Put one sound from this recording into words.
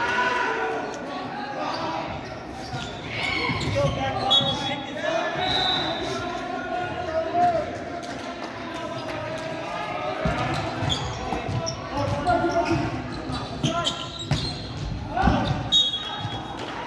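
Voices of young people chatter and call out in a large echoing gym.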